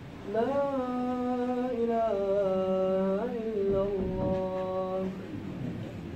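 A man chants loudly in long, drawn-out sung phrases.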